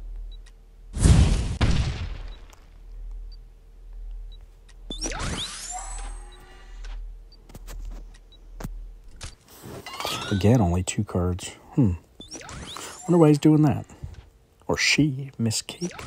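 Cards whoosh and chime as they are played.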